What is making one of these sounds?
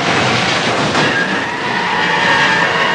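Tyres screech as a car skids on the road.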